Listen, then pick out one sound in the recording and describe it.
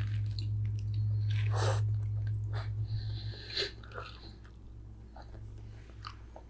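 A girl chews food close to a microphone.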